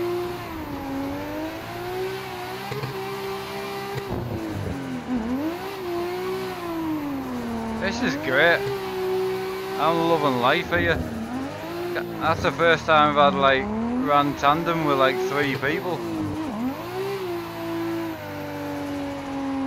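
A car engine revs up and down steadily, changing pitch as it shifts gears.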